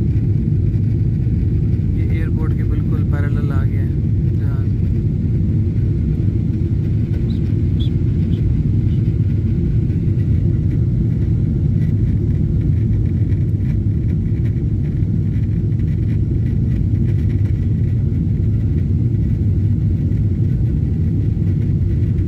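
Jet engines roar steadily inside an aircraft cabin in flight.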